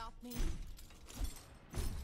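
A whip lashes and cracks sharply.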